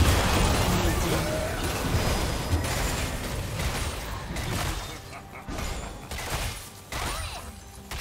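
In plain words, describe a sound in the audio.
Spell effects crackle and blast in rapid bursts.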